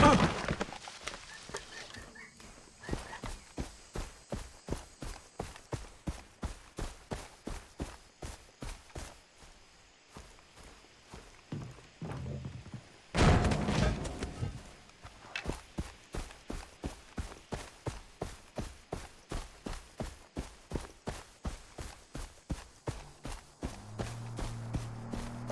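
Footsteps swish through tall grass at a brisk, steady pace.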